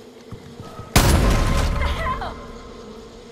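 A rifle fires a loud shot that echoes briefly.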